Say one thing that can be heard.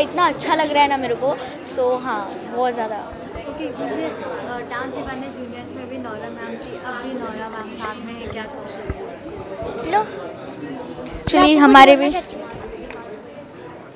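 A young girl speaks with animation into a microphone close by.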